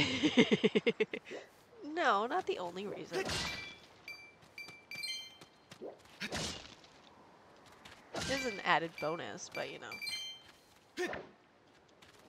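A sword swishes through the air in quick slashes.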